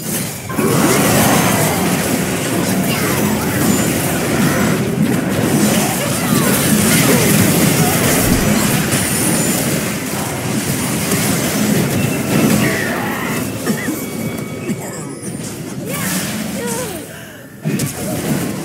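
Magic spells crackle, whoosh and blast in a busy game battle.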